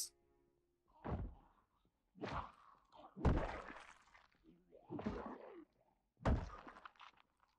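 Blunt blows thud against a body.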